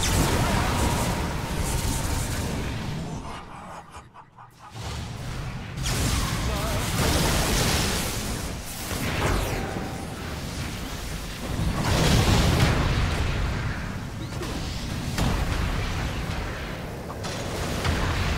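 Magical blasts and crackling spell effects burst in quick succession.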